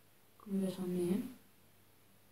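A young woman speaks briefly and calmly, close by.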